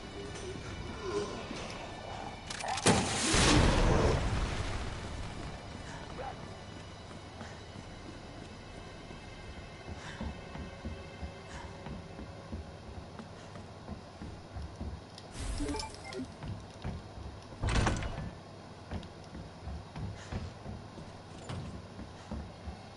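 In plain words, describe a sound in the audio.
Footsteps thud on a hard floor.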